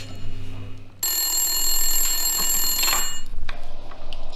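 A telephone bell rings.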